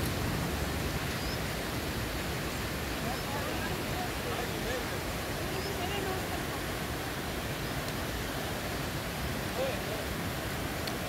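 Men talk quietly a short distance away.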